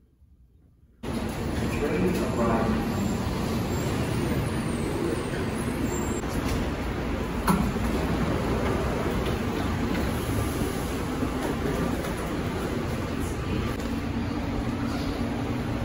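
A train rumbles steadily along its track.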